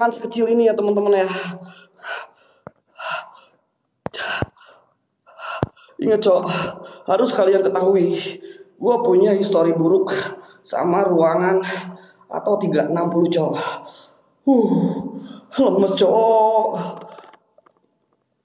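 A young man talks close to a phone microphone, with animation.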